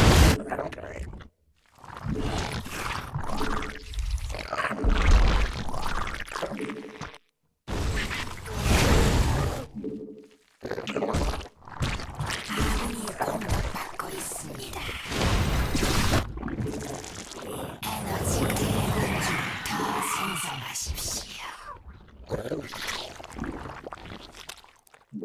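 A young man talks quickly and with animation.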